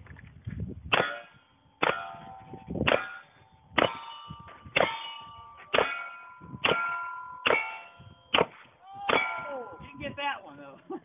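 Steel targets ring out with a metallic clang after hits.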